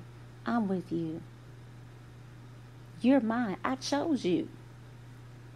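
A woman speaks calmly and closely into a microphone.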